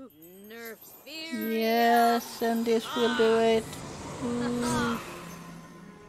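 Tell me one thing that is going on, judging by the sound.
A magic spell whooshes and sparkles with chiming tones.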